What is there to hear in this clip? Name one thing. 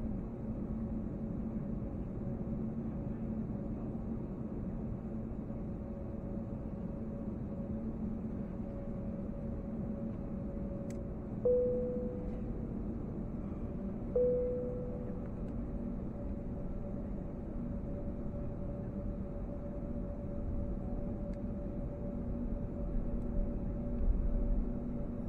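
A jet's engines hum in a low, steady drone, heard from inside the cabin as the plane taxis.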